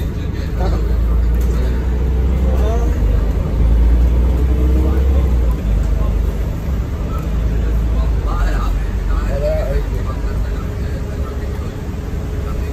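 A bus interior rattles and creaks over the road.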